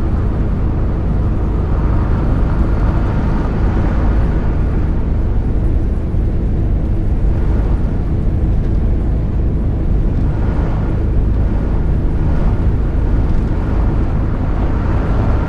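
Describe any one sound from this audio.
Tyres roar on a wet road.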